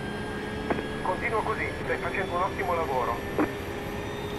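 A man speaks briefly with animation, close to a microphone.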